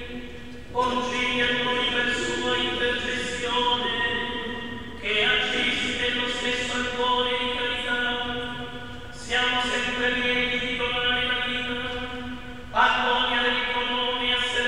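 A group of men sing slowly through a microphone in a large echoing hall.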